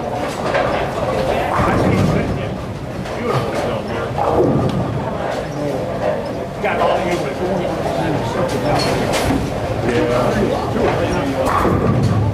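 Bowling balls roll down the lanes and crash into pins.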